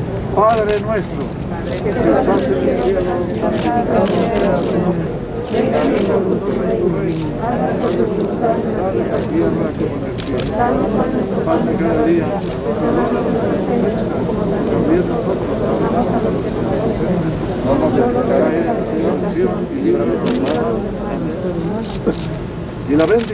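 An elderly man speaks steadily and solemnly outdoors.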